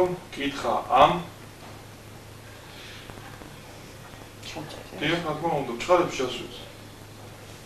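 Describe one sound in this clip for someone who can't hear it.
A man speaks in a low, weary voice close by.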